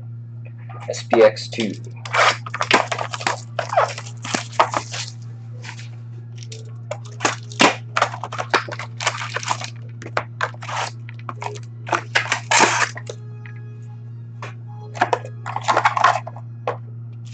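Plastic wrapping crinkles and tears as packs are opened.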